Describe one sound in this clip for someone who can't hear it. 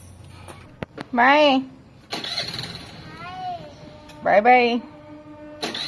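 A child calls out in a high voice nearby.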